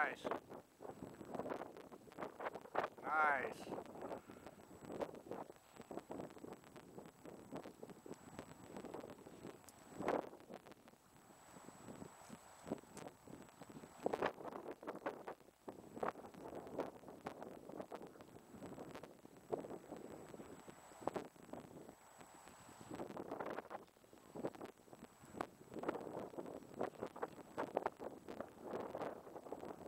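Wind gusts across an open hillside.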